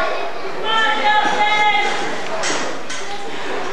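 Ring ropes creak and rattle as a wrestler climbs onto them.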